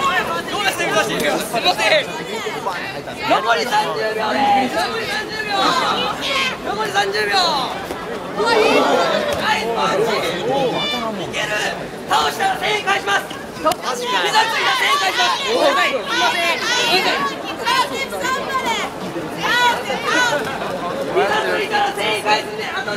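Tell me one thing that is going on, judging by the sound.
A crowd of young people chatters and shouts close by, outdoors.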